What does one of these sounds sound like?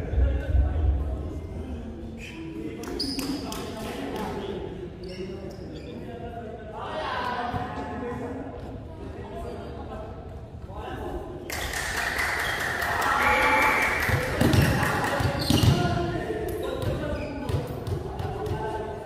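Young men call out and shout to each other in a large echoing hall.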